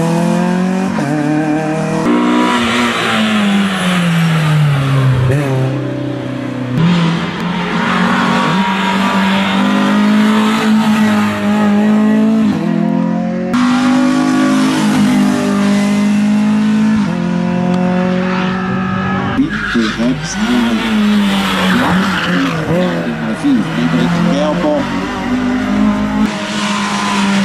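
A race hatchback's engine shifts up through the gears.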